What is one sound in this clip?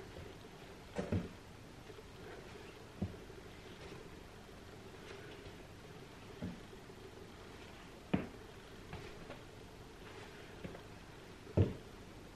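Feet thud on a wooden floor now and then.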